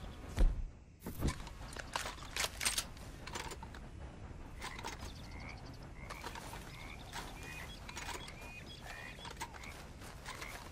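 Wind blows softly across open country.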